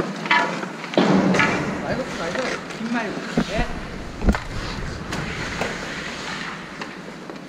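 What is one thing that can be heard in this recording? Skate blades scrape on ice.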